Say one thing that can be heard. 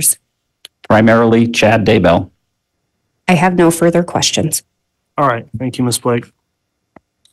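A man speaks calmly through a microphone, heard over an online call.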